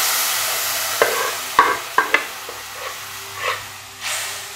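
A spoon scrapes and stirs food in a metal pan.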